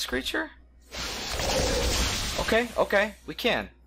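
A spell bursts with a loud rushing whoosh.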